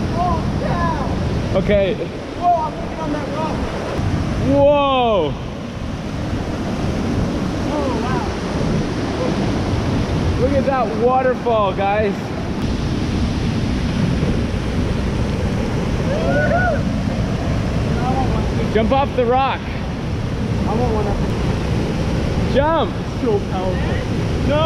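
A waterfall rushes steadily outdoors.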